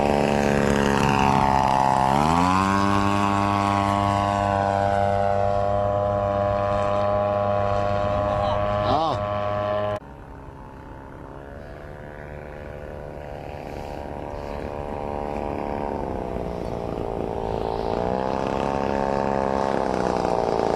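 A small model plane engine whines loudly overhead, its pitch rising and falling as it passes.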